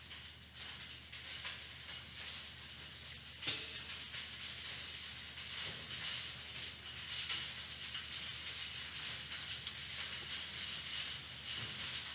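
Fruit bats squeak and chatter up close.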